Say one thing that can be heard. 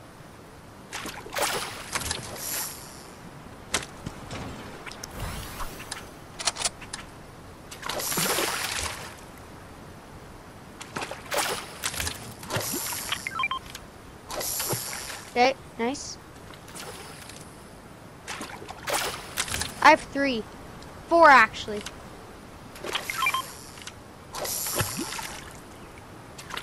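A fishing line whooshes out as it is cast.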